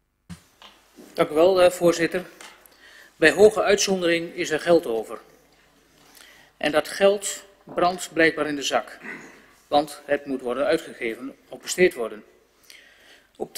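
A middle-aged man speaks steadily into a microphone, reading out.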